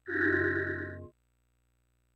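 A magical orb gives off a shimmering, ringing chime that stops abruptly.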